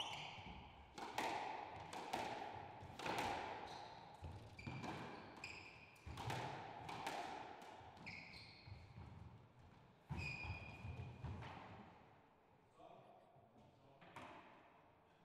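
A squash ball smacks hard against the walls with a sharp, ringing echo.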